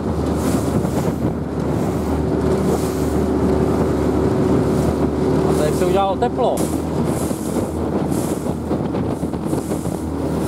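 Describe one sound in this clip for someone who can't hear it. Water splashes and rushes against the hull of a moving boat.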